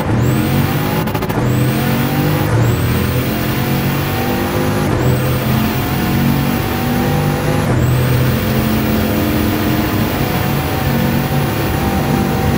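A hypercar's W16 quad-turbo engine roars at full throttle.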